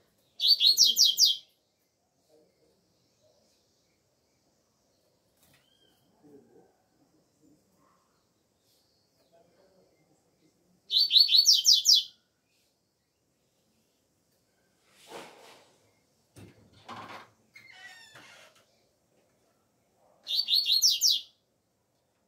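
A double-collared seedeater sings short, bright bursts of song.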